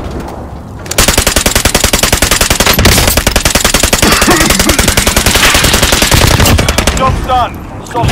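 A light machine gun fires in rapid automatic bursts.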